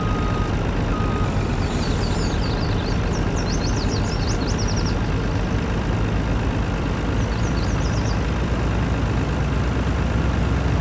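A truck engine rumbles steadily as the truck drives along.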